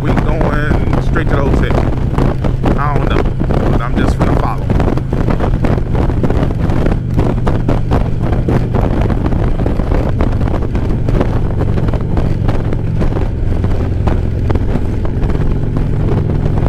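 A motorcycle engine hums steadily at highway speed.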